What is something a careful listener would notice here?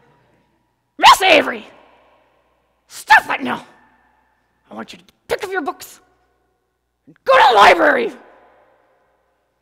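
A middle-aged woman speaks with animation through a microphone in a large echoing hall, in short bursts with pauses.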